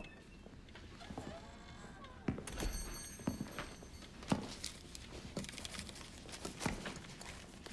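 Glass bottles clink on a shelf.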